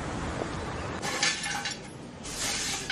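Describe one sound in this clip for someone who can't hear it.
A broom sweeps across a hard floor.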